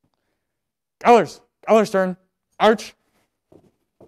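A man shouts drill commands in a large room.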